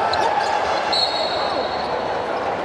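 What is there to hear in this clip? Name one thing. A referee's whistle blows a short shrill blast.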